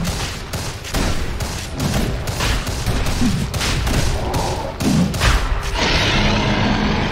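Game spells and weapon blows crash and whoosh in quick bursts.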